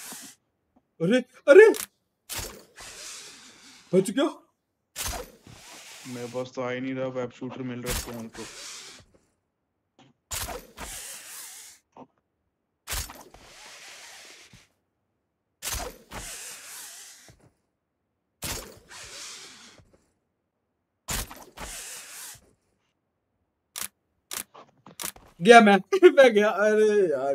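A young man speaks briefly and with animation close to a microphone.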